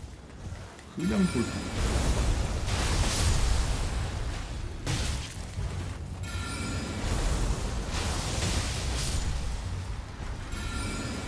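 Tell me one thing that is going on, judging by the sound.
Loud magic blasts and crashes burst out in a fight.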